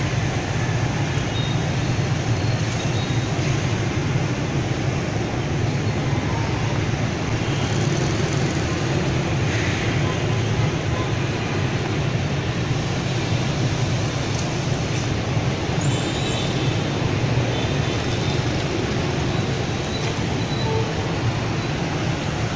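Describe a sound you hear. Heavy motorbike traffic streams past with a steady engine roar.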